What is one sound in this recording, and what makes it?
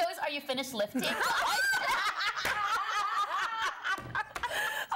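Several women laugh loudly together.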